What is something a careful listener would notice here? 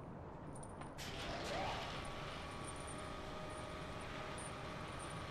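A heavy metal platform creaks and groans as it swings on its chains.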